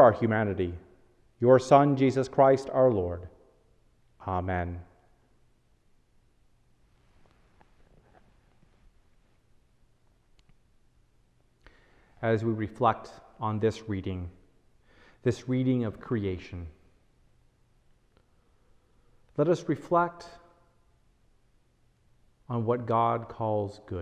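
A man reads aloud calmly and slowly into a close microphone, with long pauses.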